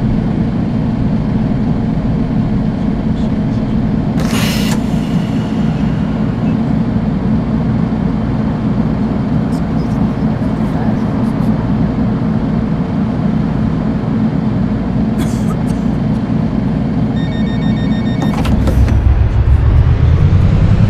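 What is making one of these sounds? A bus engine hums steadily while driving.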